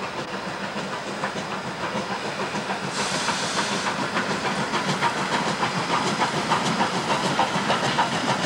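A steam locomotive chugs closer, growing louder.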